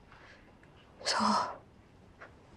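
A young woman speaks briefly and softly close by.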